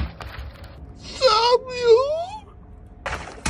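A hand rubs a water-filled balloon, making loud squeaks.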